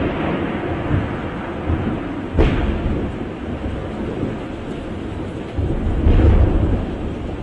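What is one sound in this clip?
Waves wash gently onto a beach.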